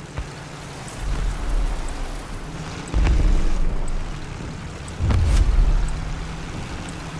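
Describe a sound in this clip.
Heavy explosions boom with deep rumbling.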